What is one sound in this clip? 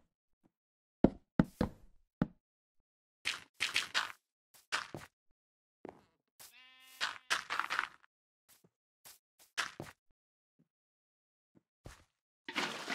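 Blocks knock and thud as they are set down one after another.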